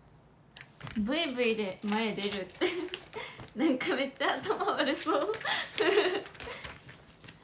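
A young woman talks cheerfully and close to a microphone.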